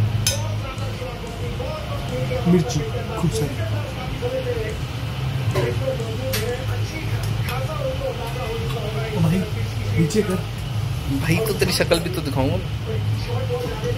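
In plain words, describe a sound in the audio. Metal lids clink against small metal bowls.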